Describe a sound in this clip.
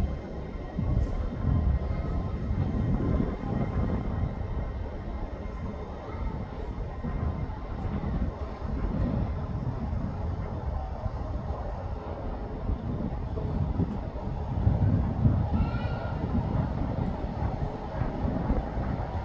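A diesel locomotive rumbles as it approaches slowly along the track.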